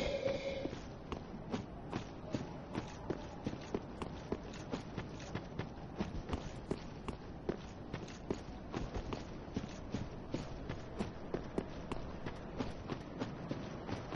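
Armoured footsteps crunch steadily over stone.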